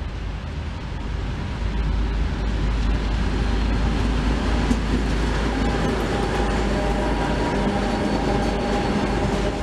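An ST44 two-stroke diesel locomotive approaches and roars past.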